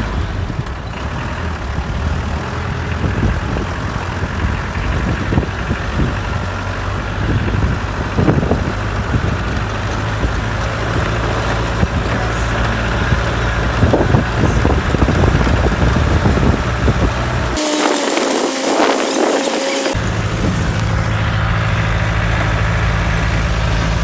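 A vehicle jolts and rattles over a rough track.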